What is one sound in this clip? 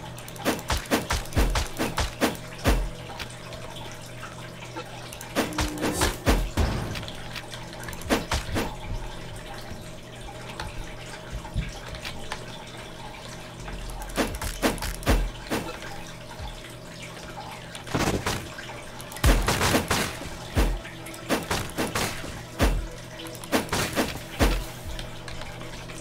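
Sword slashes whoosh and strike with sharp impacts.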